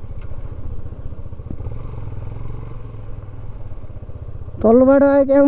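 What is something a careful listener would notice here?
A motorcycle engine throbs at a low, steady pace.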